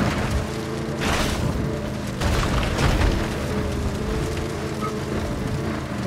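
Tyres rumble and brush crashes as an armoured truck drives over rough ground.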